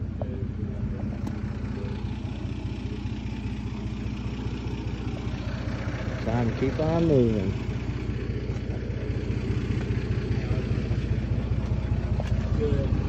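A vehicle engine idles with a steady low rumble nearby.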